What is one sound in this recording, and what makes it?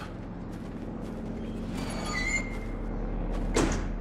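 A heavy door slams shut.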